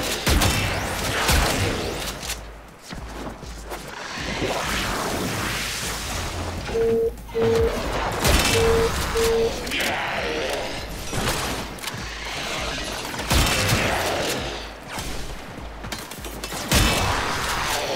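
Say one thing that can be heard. Weapons fire and strike in rapid bursts.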